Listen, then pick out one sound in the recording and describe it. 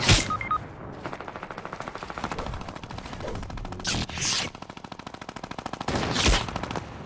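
Footsteps patter quickly in a video game.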